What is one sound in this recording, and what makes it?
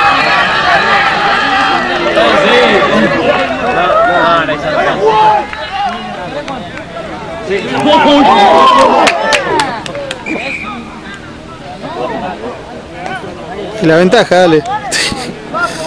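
A crowd of spectators cheers and shouts excitedly nearby, outdoors.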